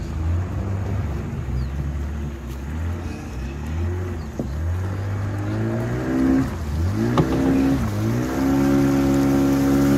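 A boat's outboard motor drones steadily, its pitch rising and falling.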